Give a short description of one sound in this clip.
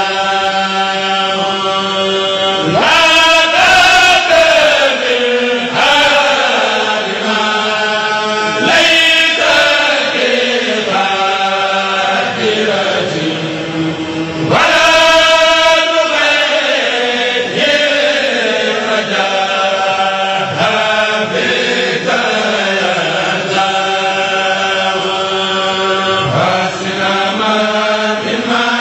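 A group of men chant together in unison through loudspeakers, in a large space.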